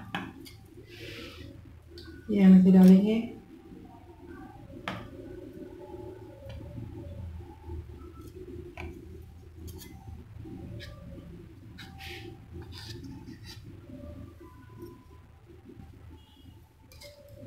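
A metal spoon clinks and scrapes against a metal bowl.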